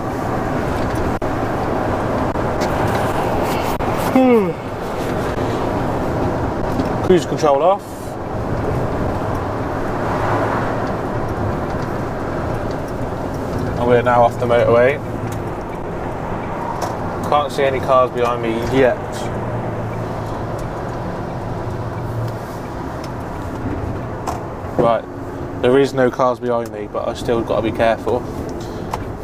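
A lorry engine rumbles steadily while driving.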